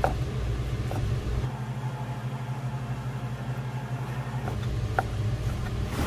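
A knife chops through meat on a wooden board.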